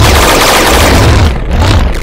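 A video game explosion bursts.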